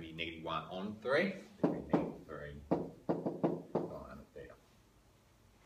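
A man speaks calmly and clearly close by.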